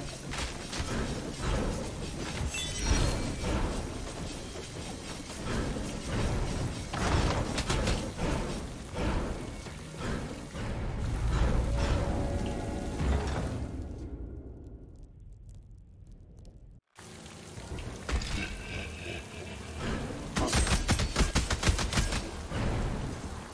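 Sharp metallic hits clang on enemies.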